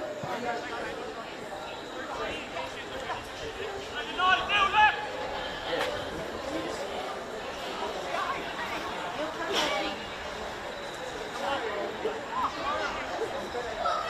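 Young men shout to each other from across an open playing field.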